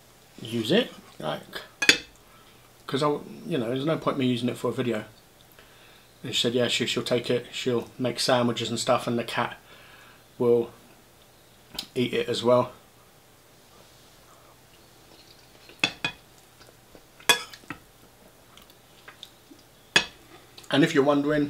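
A fork scrapes and clinks against a bowl.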